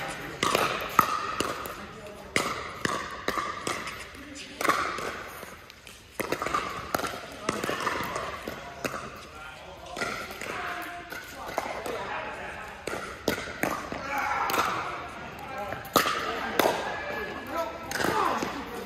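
Sneakers squeak and shuffle on a hard court.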